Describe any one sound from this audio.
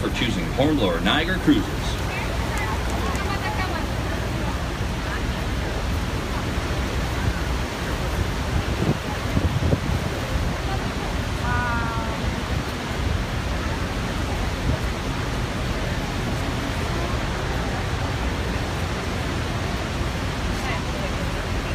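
A huge waterfall roars close by.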